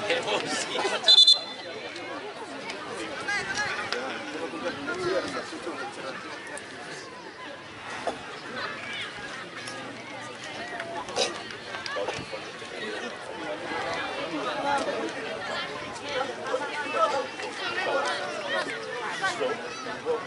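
A crowd of spectators chatters and calls out outdoors throughout.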